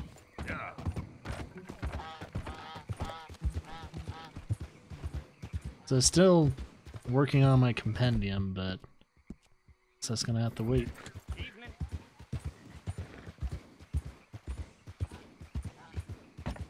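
A horse's hooves clop steadily along a road.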